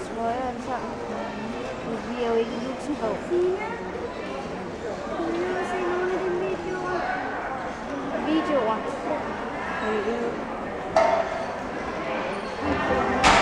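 A gymnast's hands slap and thud against the wooden bars.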